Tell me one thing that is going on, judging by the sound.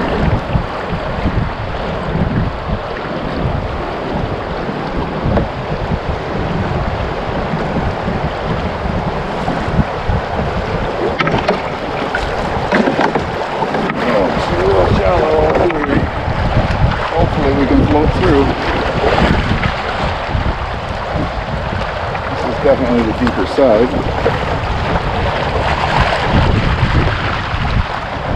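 Rapids rush and splash loudly around a canoe.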